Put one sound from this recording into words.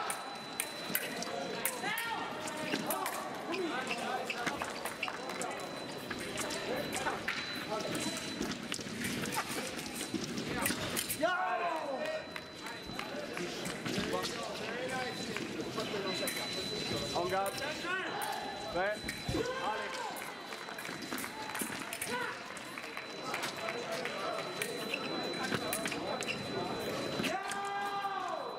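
Fencing blades clash and clink.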